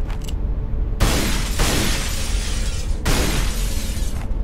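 A pistol fires several shots.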